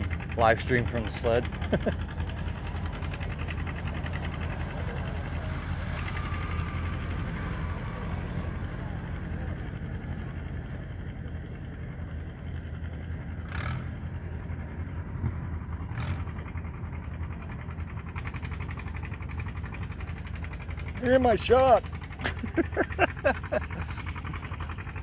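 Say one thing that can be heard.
A tractor engine rumbles steadily at a distance.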